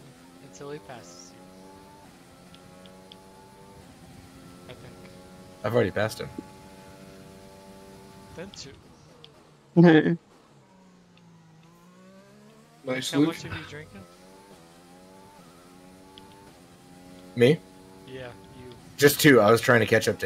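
A racing car engine whines high, rising and falling as it shifts gears and slows for corners.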